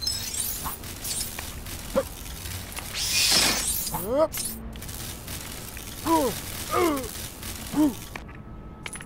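Short electronic chirps and blips sound in quick bursts.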